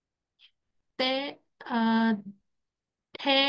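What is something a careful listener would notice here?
A woman speaks slowly and clearly over an online call, pronouncing single syllables.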